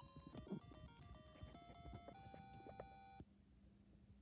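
A cheerful electronic game jingle plays through a small speaker, stepping upward note by note.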